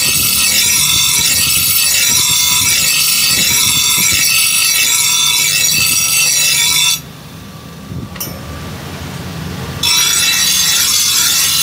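A grinding wheel shrieks loudly against a steel blade.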